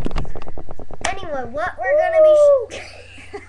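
A young boy calls out in a high, drawn-out voice close to a microphone.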